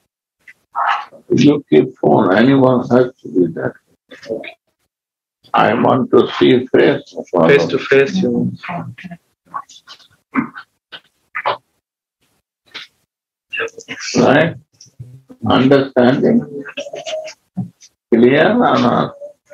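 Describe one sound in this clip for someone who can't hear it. An elderly man talks calmly through an online call, with frequent pauses.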